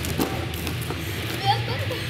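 Bare feet thump on a soft mat.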